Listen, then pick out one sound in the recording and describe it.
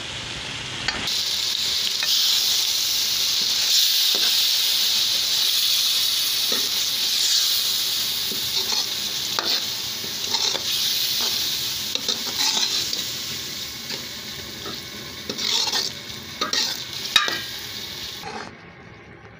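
Food sizzles and fries in a hot pan.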